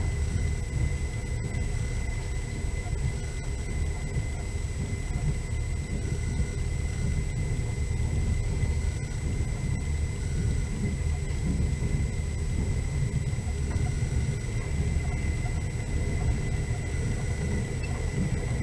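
Tyres rumble over a snowy road.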